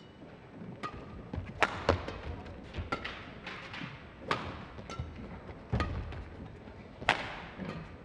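Shoes squeak on a court floor as players dart about.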